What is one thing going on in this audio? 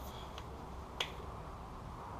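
A ratchet wrench clicks once.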